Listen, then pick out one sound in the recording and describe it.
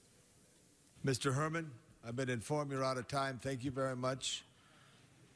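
An older man speaks calmly through a microphone in a large hall.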